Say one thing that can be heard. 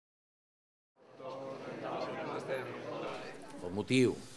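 A group of men chat and greet each other nearby, their voices overlapping.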